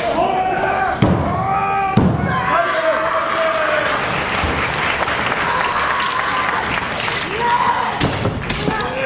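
Bodies slam onto a wrestling mat with loud thuds.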